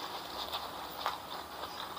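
A man wipes his mouth with a tissue.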